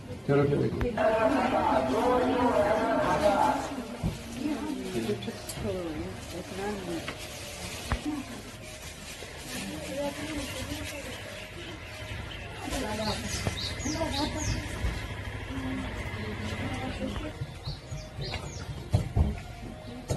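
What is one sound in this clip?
Wooden hand looms knock softly as weavers beat down the threads.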